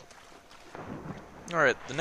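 Water splashes as someone swims.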